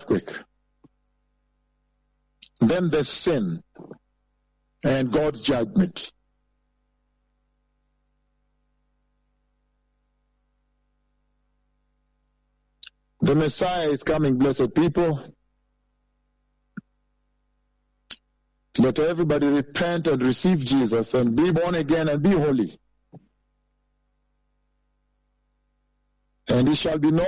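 A man speaks with emphasis into a close microphone, in bursts with long pauses.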